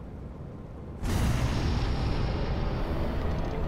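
A spaceship engine roars louder as it boosts.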